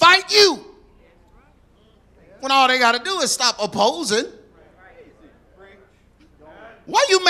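A man speaks with animation to an audience, his voice filling a large hall.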